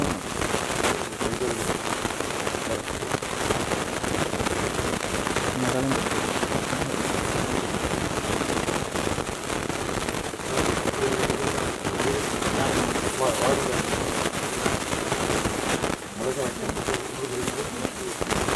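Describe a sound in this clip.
A man chants steadily nearby.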